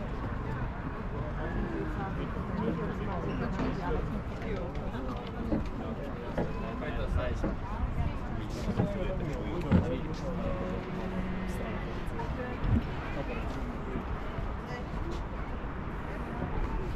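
Several men and women chat nearby outdoors.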